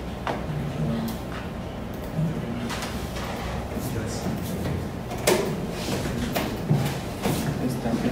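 Men talk quietly nearby in a small room.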